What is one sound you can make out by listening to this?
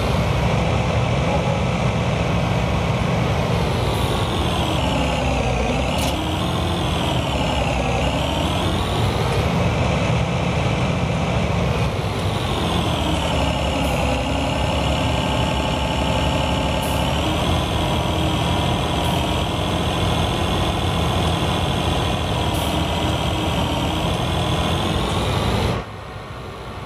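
A combine harvester engine drones steadily, its pitch rising and falling as it drives.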